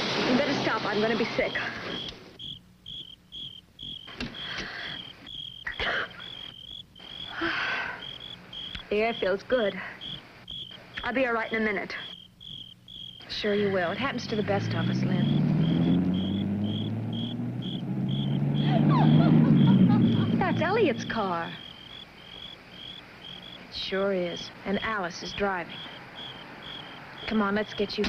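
A young woman speaks anxiously nearby.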